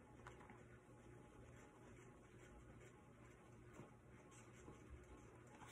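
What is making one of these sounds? Paper pages rustle as a book's page is turned.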